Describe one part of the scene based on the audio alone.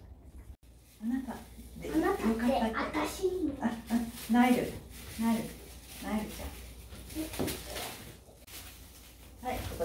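A woman speaks calmly and warmly nearby.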